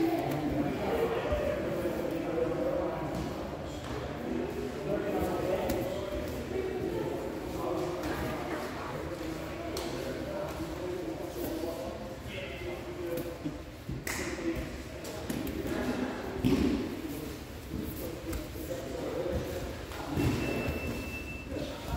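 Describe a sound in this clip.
Men talk and chatter in a large echoing hall.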